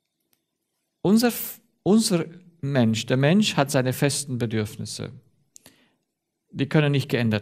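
A man speaks calmly and clearly into a microphone, pausing between phrases.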